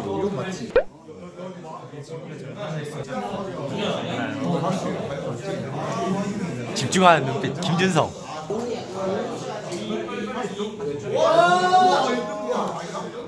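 Young men talk and laugh close by, with animation.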